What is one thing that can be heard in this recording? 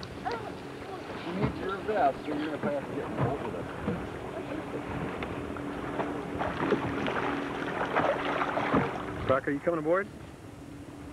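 A young man in the water talks nearby.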